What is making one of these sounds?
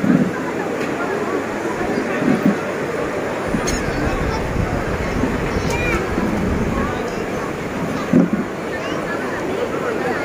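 Nearby women talk loudly over the crowd.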